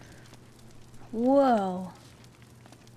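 A young woman exclaims loudly in surprise.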